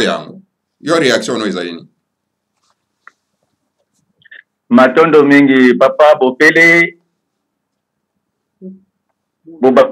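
A middle-aged man speaks with animation into a close microphone, in short bursts with pauses.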